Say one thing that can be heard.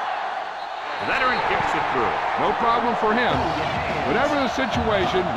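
A crowd cheers loudly after a kick.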